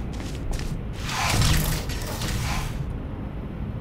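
A heavy metal door slides shut with a rumbling whoosh.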